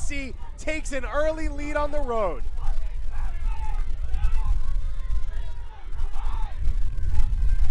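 Young men cheer and shout excitedly outdoors.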